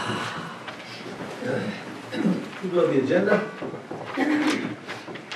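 A man and a woman talk quietly nearby.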